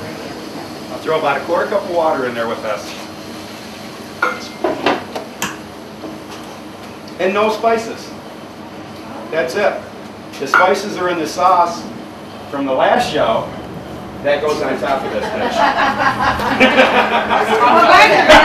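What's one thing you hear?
A man talks with animation to a small group, close by.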